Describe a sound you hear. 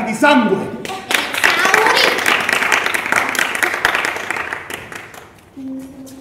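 A crowd claps hands in a burst of applause.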